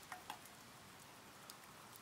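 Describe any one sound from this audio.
Water pours from a kettle into a glass.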